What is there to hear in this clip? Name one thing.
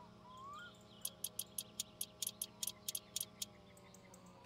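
A ratchet wrench clicks rapidly as it turns a bolt.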